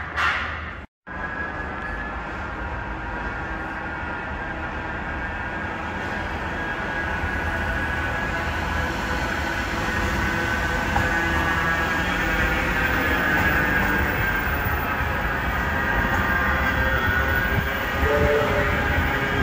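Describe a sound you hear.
A tram rolls up and passes close by with a rising electric whine.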